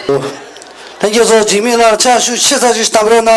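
A man speaks loudly into a microphone over loudspeakers.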